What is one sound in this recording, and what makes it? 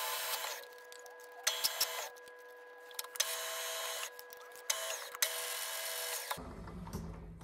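A machine drill whines as it bores into metal in short bursts.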